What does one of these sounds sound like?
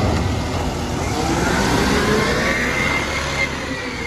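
A hydraulic arm whines with rising pitch as it lowers.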